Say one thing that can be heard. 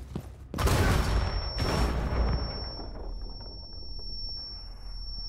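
A high steady ringing tone follows the blast and lingers.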